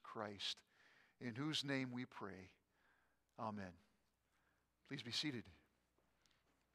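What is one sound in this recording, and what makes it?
An elderly man speaks calmly into a microphone in an echoing hall.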